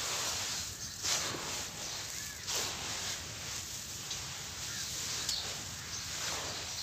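Loose soil trickles and pours down onto a heap.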